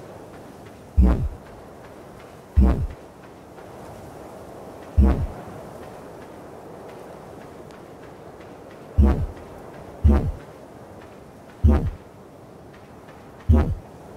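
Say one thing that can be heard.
Heavy footsteps thud on soft ground now and then.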